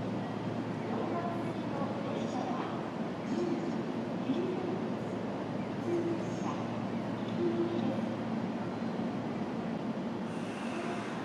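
A train rumbles closer along the tracks.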